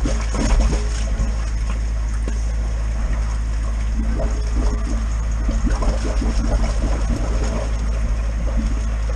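A taut cable scrapes and rubs against brickwork.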